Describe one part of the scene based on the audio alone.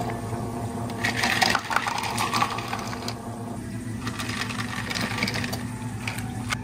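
Ice cubes clatter and rattle into a plastic cup.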